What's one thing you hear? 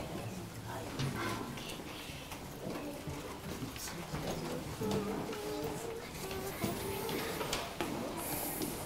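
A man speaks calmly to an audience in a room with some echo.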